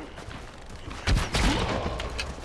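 A bowstring twangs as an arrow flies.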